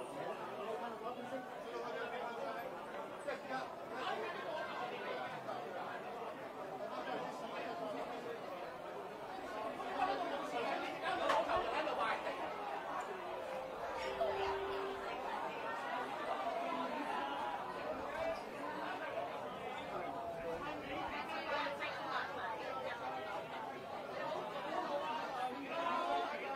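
A large crowd of men and women talks and shouts loudly all around, echoing in a hard, enclosed hall.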